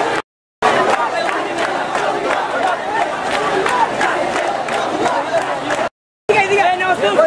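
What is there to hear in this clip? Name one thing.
A crowd of young men and women chatters and shouts loudly outdoors.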